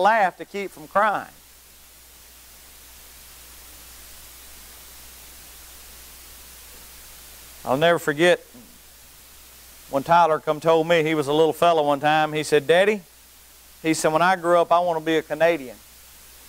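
A middle-aged man speaks with animation into a microphone, pausing between phrases, in a large room with some echo.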